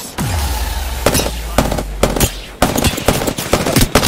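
A rifle fires in rapid bursts, close by.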